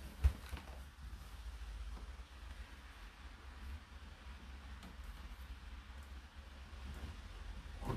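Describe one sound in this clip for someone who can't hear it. Clothes rustle as a hand rummages in a tumble dryer drum.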